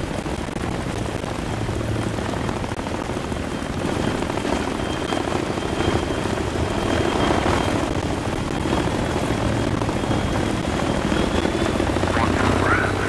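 A helicopter drones steadily overhead.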